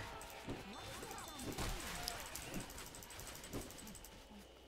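A blunt weapon swings and thuds repeatedly into bodies.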